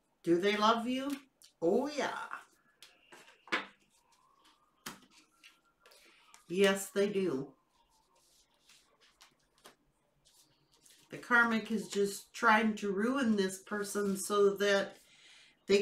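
A middle-aged woman speaks calmly and close to a microphone, in short phrases with pauses.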